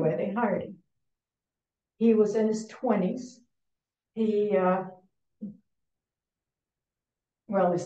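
An elderly woman speaks calmly in short phrases with pauses, heard through an online call.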